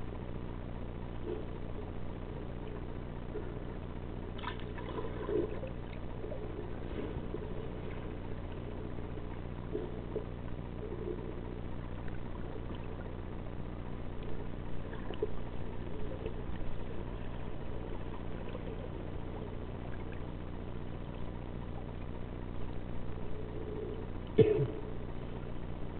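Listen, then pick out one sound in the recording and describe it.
Bubbles gurgle and fizz underwater as a swimmer kicks.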